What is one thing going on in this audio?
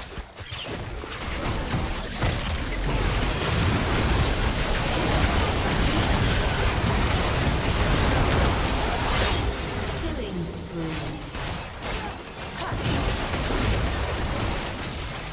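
Spell effects and hits crash and whoosh in a busy fight.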